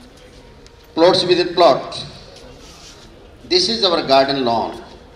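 An elderly man reads aloud into a microphone.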